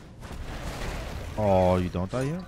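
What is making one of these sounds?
A magic blast whooshes and crackles.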